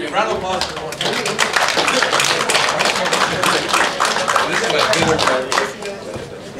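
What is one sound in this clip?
An audience claps loudly.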